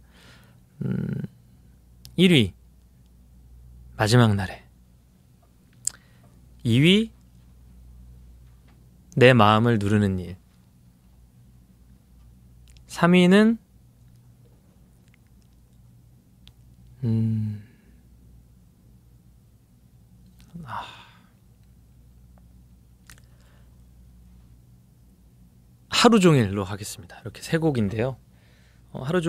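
A young man speaks into a microphone in short bursts, close and clear.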